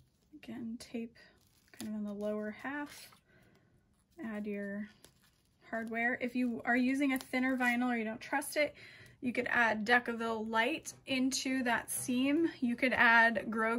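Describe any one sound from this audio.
A plastic buckle clicks softly in hands.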